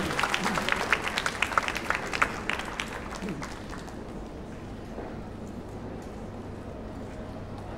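An ensemble of plucked guitars and strings plays outdoors.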